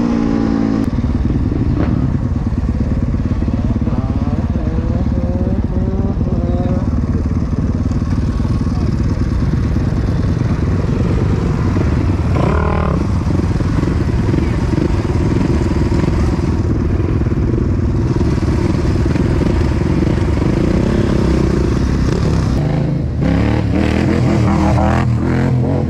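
A dirt bike engine idles and revs loudly close by.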